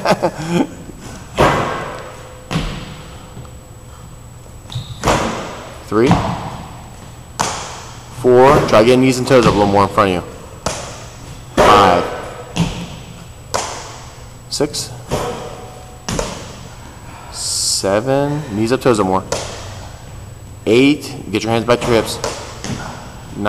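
Feet thump on a padded mat as a man jumps and lands.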